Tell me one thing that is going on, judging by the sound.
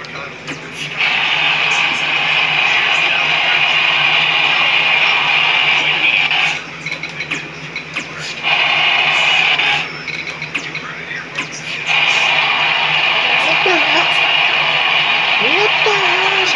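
A video game crowd roars loudly through television speakers.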